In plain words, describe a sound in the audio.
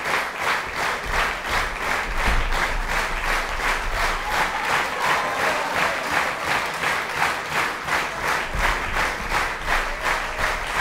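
A large choir sings together in a big hall.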